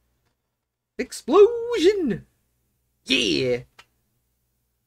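A man speaks briefly and casually, close to a microphone.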